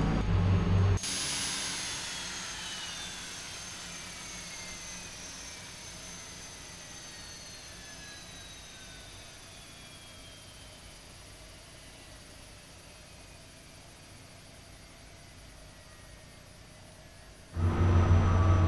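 A jet engine whines from outside and slowly fades.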